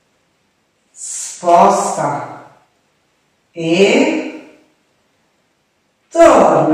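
A woman speaks calmly and clearly in short phrases, close to a microphone.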